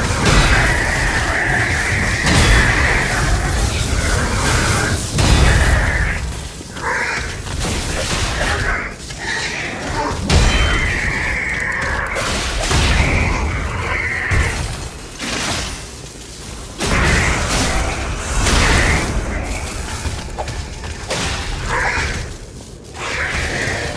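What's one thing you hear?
Metal clangs and crashes loudly.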